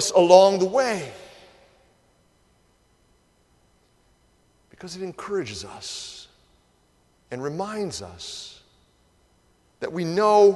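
A middle-aged man speaks slowly and earnestly into a microphone, with pauses, in a large echoing room.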